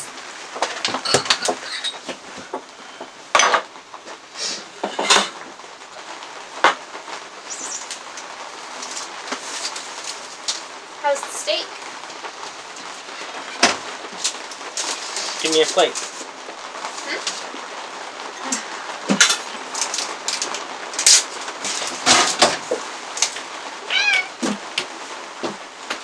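Plates and cutlery clink and knock on a wooden table.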